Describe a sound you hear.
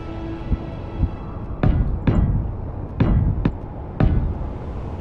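Heavy metal blocks clunk into place several times.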